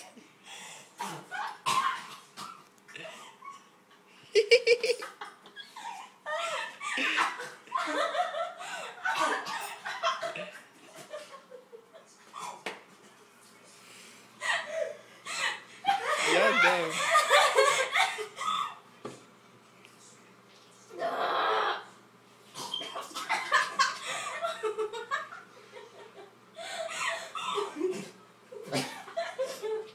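Young women talk and laugh loudly close by.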